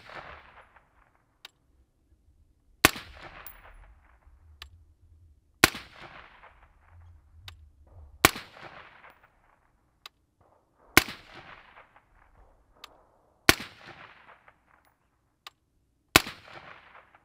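A suppressed rifle fires single shots at a slow, steady pace, each crack echoing outdoors.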